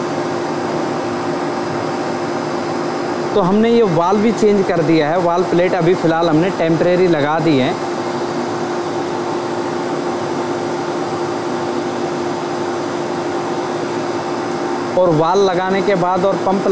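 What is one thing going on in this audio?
A machine hums steadily.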